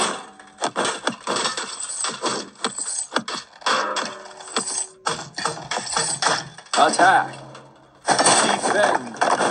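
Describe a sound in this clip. Swords clash and clank in a lively game battle.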